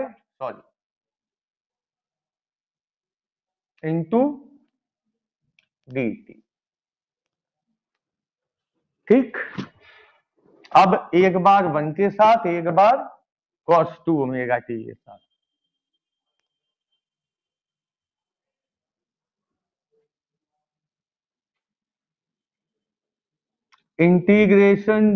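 A man speaks calmly through a headset microphone, in short bursts with pauses.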